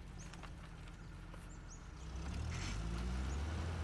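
An off-road vehicle's engine rumbles low as it drives.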